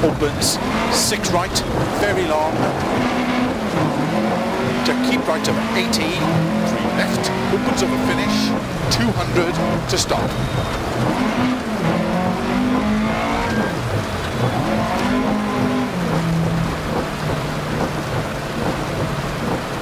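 Gravel sprays and rattles against the underside of a car.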